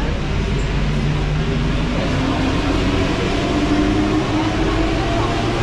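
A metro train rumbles and screeches loudly along the track.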